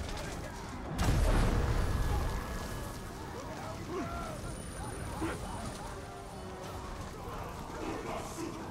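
Flames roar and crackle around burning fighters.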